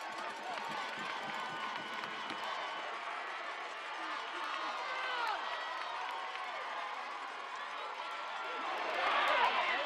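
A crowd of spectators shouts and cheers outdoors, growing louder near the end.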